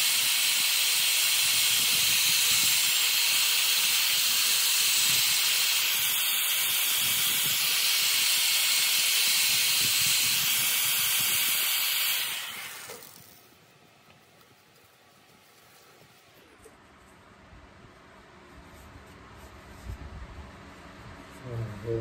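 A lathe hums as it turns.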